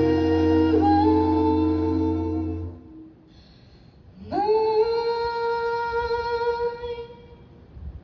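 A group of young men and women sing a held chord together through microphones.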